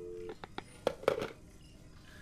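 A telephone receiver is hung up with a clack.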